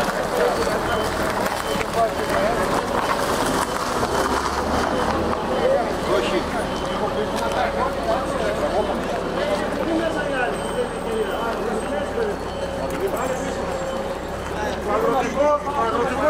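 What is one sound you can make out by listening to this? Several men talk with each other nearby, outdoors.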